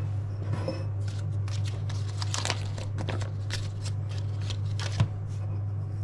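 Foil wrapping rustles and crinkles as it is peeled open.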